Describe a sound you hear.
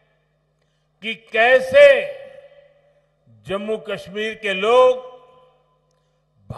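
An older man speaks forcefully into a microphone over loudspeakers, with pauses between phrases.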